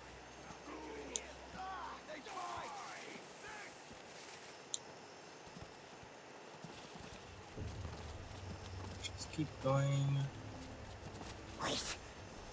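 Footsteps patter quickly on stone and dirt.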